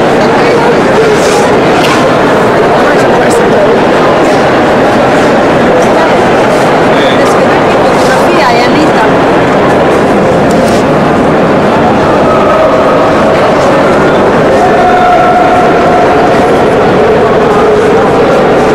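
A crowd of people murmurs and chatters, echoing through a large hall.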